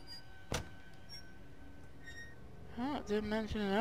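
A wooden drawer slides open.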